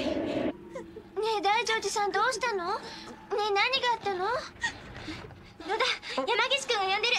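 A young woman asks with worry and urgency, close by.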